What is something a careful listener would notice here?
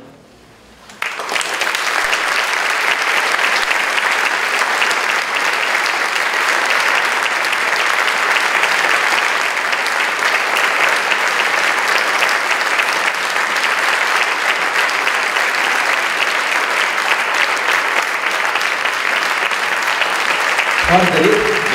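An audience claps loudly and steadily.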